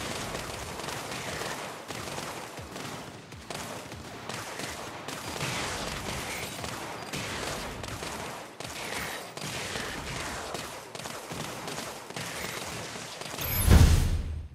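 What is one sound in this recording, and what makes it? Game turrets fire rapid bursts of shots.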